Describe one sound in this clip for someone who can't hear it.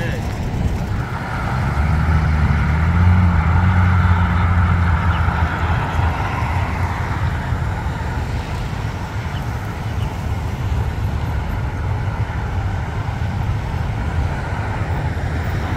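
Road traffic passes by.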